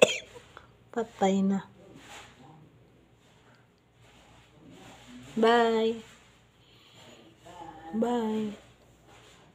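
A parrot makes short whistling calls close by.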